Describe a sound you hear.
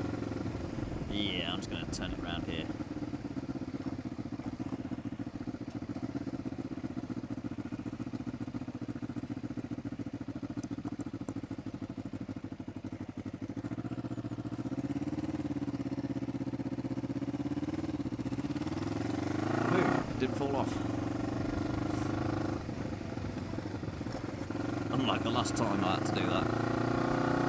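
Wind rushes past a microphone on a moving motorcycle.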